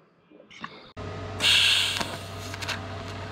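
A welding arc buzzes and crackles steadily.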